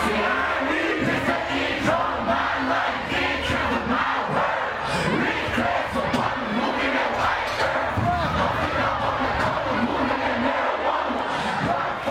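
A man raps loudly into a microphone over a loudspeaker.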